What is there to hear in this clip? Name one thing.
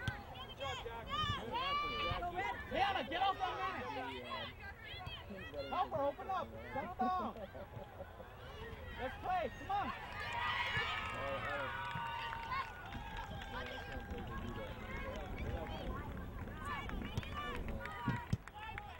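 A crowd of spectators shouts and cheers outdoors at a distance.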